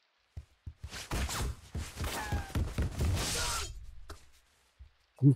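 A gunshot blasts and rings out.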